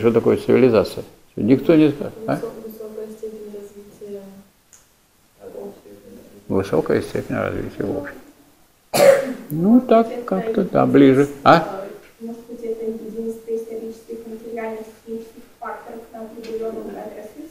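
An elderly man speaks calmly to a room.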